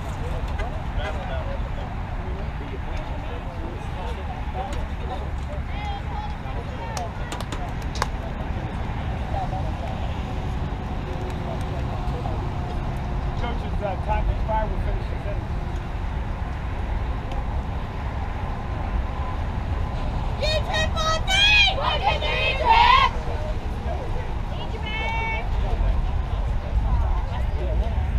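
Young girls chatter and call out at a distance outdoors.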